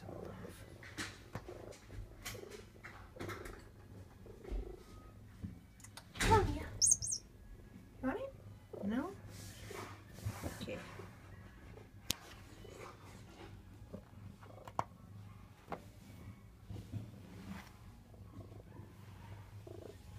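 A hand rustles against a cat's fur up close.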